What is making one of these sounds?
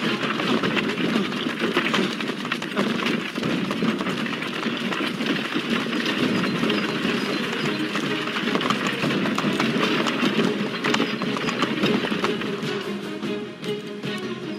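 A horse-drawn wagon rumbles and creaks.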